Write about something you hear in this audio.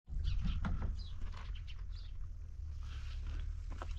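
Water pours from a jug.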